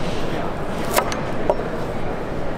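A knife chops through a carrot onto a wooden board.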